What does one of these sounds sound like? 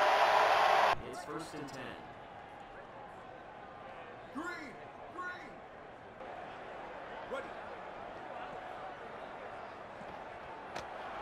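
A quieter stadium crowd murmurs in the background.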